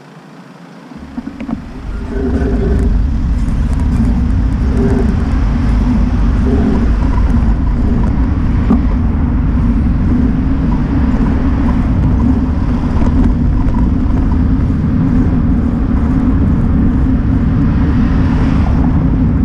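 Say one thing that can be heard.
Wind buffets and rumbles loudly as a rider moves along a road.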